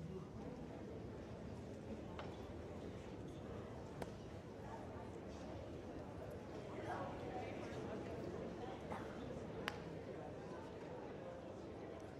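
A choir sings on stage, heard from afar in a large hall.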